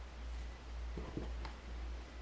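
A hand sets a deck of cards down on a table with a soft tap.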